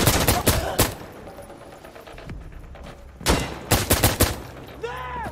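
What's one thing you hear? Rifle shots crack in quick bursts, with a short ringing echo after each.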